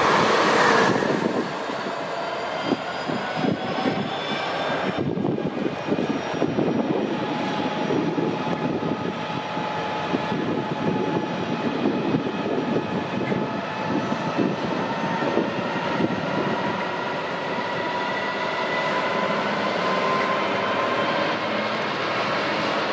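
A diesel freight locomotive rumbles and hums steadily as it pulls slowly along.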